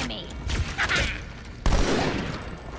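A heavy blow strikes a creature with a wet splatter.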